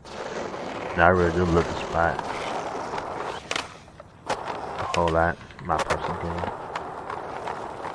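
Skateboard wheels roll on concrete.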